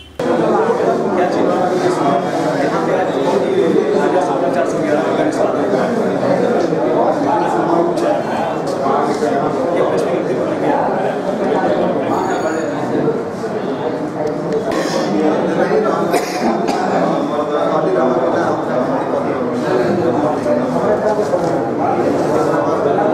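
Several men talk over one another in a small, echoing room.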